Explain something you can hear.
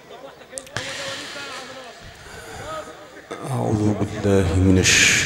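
A man chants loudly and melodically into a microphone, his voice carried through loudspeakers.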